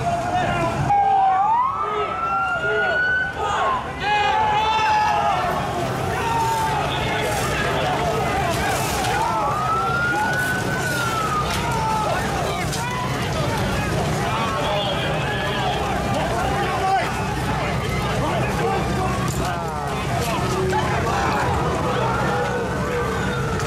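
Sirens wail nearby.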